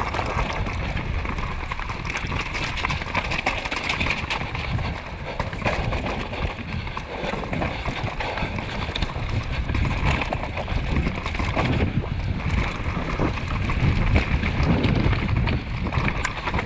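Bike tyres rattle and crunch over a rocky dirt trail.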